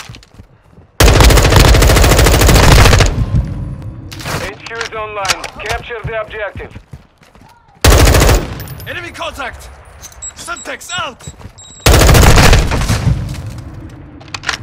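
Automatic gunfire rattles in loud rapid bursts.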